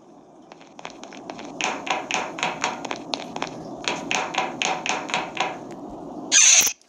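Quick footsteps patter on a metal floor.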